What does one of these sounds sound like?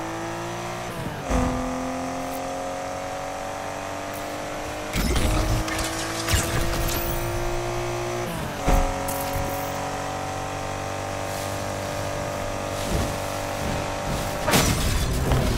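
A racing car engine roars at high speed and shifts up through gears.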